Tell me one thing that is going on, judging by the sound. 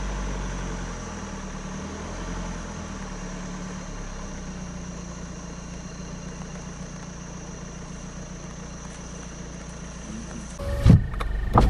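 A large animal rustles through undergrowth.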